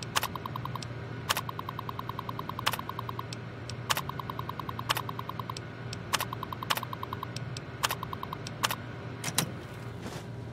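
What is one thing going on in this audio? Sharp clicks sound from a computer terminal.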